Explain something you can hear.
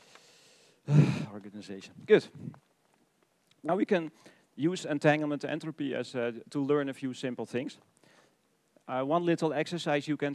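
A man speaks calmly into a microphone, as if lecturing.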